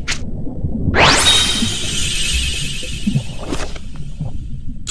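A bright sparkling chime rings out.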